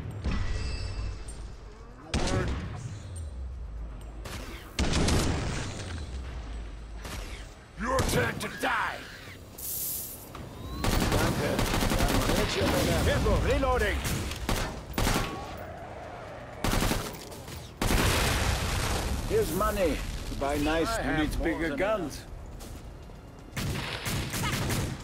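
Gunfire from a rifle rattles in bursts.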